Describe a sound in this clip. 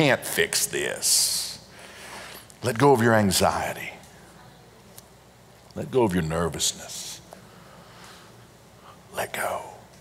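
A middle-aged man speaks with animation into a microphone, in pauses.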